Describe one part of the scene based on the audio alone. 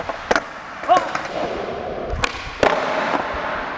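A skateboard clacks and snaps against concrete.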